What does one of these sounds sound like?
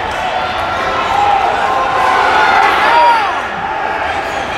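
Spectators cheer loudly.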